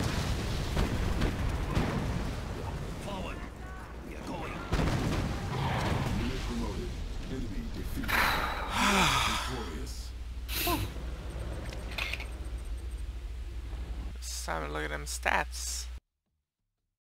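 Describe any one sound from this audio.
Gunfire and explosions crackle and boom in a battle.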